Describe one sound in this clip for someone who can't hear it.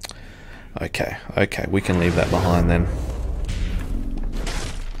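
A portal whooshes and hums as a figure teleports.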